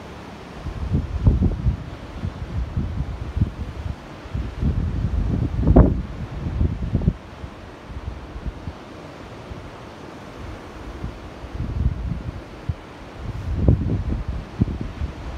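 Waves wash onto a shore nearby.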